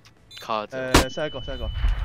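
A flash grenade bursts with a sharp bang.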